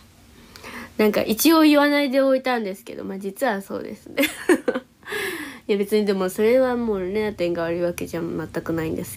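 A young woman sings softly close to the microphone.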